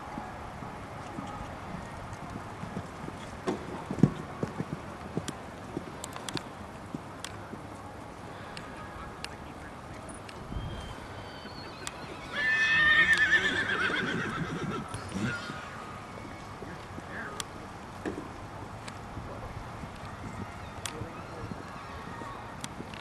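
A horse's hooves thud on sand as it canters.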